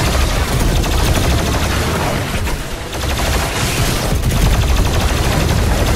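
A plasma gun fires in rapid bursts of buzzing shots.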